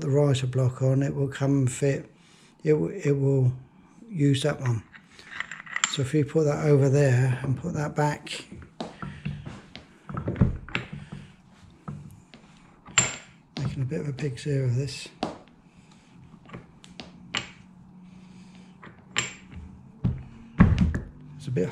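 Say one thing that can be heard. Metal parts click and knock as they are fitted together.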